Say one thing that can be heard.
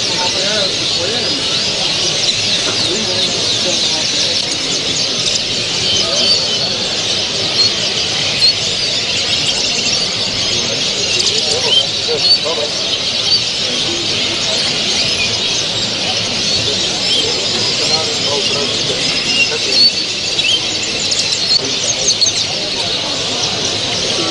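Many small birds chirp and twitter all around in a large echoing hall.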